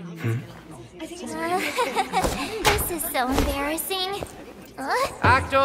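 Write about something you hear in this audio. A young woman laughs and speaks with embarrassment, close by.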